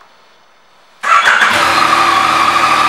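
A motorcycle engine starts up and idles loudly close by.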